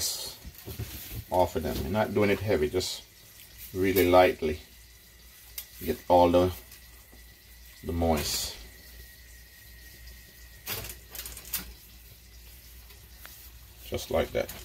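Gloved hands pat and press a piece of fish into flour with soft rustling.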